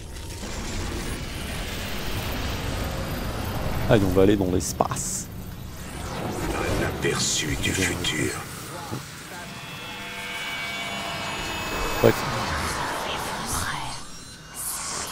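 A deep rumbling roar swells and fades.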